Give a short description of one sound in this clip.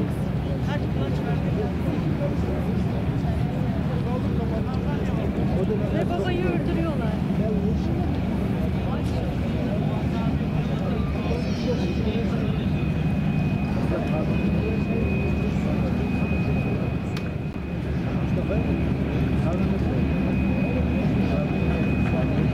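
Strong wind blows outdoors over open water.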